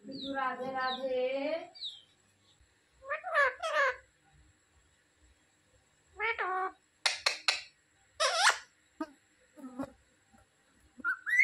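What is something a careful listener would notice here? A parrot squawks and chatters in short bursts close by.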